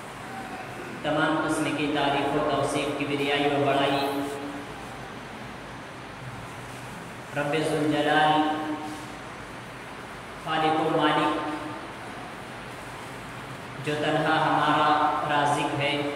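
A young man speaks into a microphone in a measured, preaching tone, with pauses between phrases.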